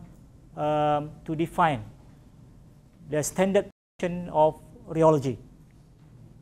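A man lectures through a microphone in short phrases.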